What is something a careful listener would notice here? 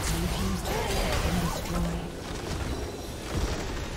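Game spell effects crackle and whoosh in a battle.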